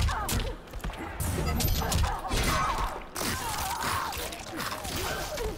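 Heavy blows land with sharp thuds and slashes in quick succession.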